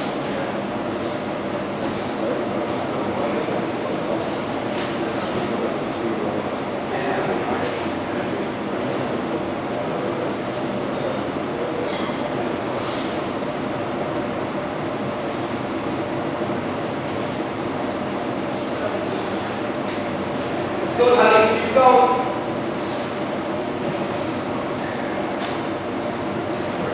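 Bodies shuffle and thud on a padded mat.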